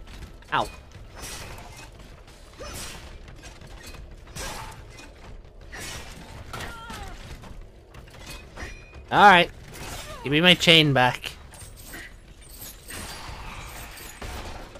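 Weapons swish and strike in a fight.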